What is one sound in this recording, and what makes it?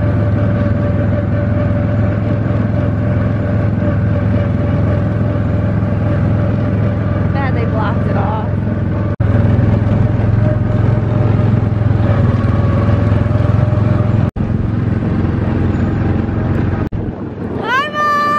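A ride vehicle hums steadily as it glides along a track.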